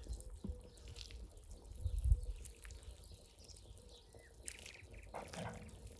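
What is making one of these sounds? A spatula scrapes and clatters in a pan of simmering stew.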